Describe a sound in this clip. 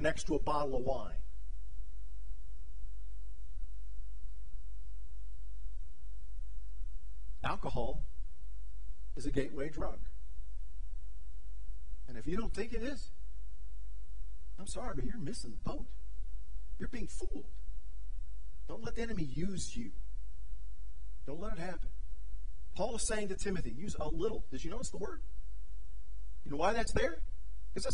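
A middle-aged man speaks through a microphone with animation, in short phrases and long pauses.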